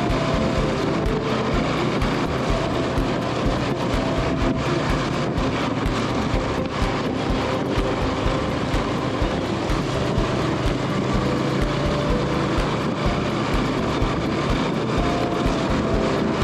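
Tyres rumble over a dirt road.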